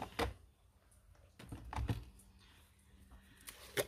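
A plastic jar lid is twisted and pulled off.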